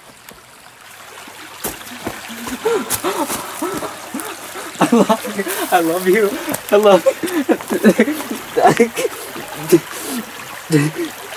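A stream trickles and babbles close by.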